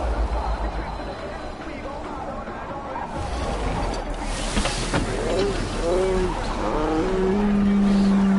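A snowboard scrapes and hisses across snow.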